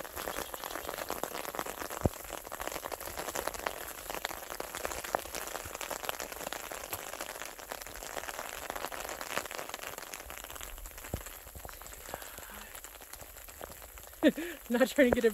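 Rain patters steadily on an umbrella close by.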